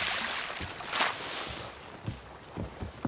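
Water splashes and hisses loudly.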